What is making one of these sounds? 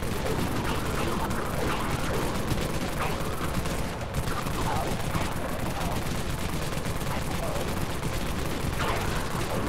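Rapid gunfire rattles without pause.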